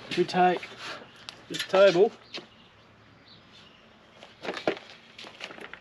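A plastic crate knocks and scrapes as it is slid into place.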